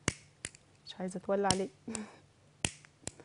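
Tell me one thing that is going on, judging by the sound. A young woman speaks briefly and softly into a microphone.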